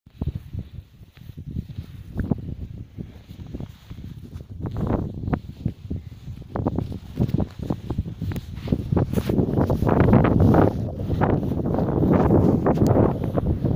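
Wind buffets loudly close by, growing stronger.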